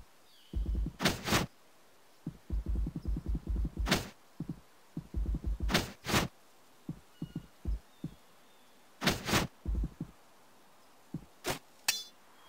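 Short sharp game whooshes swish now and then.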